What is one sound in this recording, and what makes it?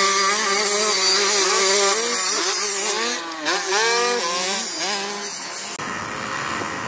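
A small dirt bike engine buzzes and revs up and down.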